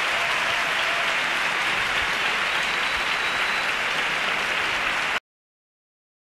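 A large choir of men and women sings loudly together.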